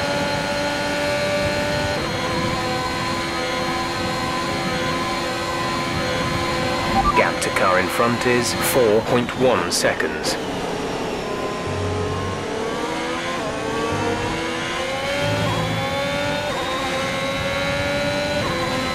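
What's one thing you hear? A racing car engine screams at high revs.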